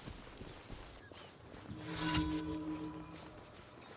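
Footsteps run quickly over grass.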